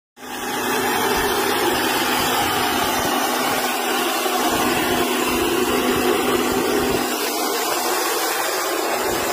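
A helicopter engine whines and roars steadily close by.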